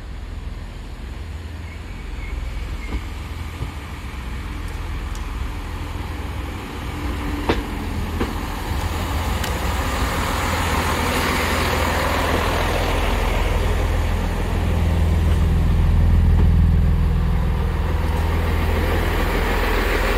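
A train rumbles into the platform, growing louder as it comes close.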